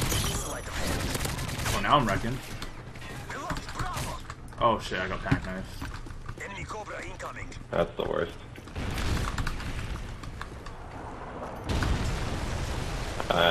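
Computer keys and a mouse click rapidly.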